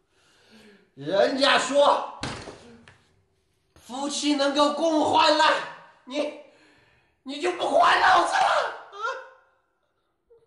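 A man sobs and speaks in a tearful, pleading voice up close.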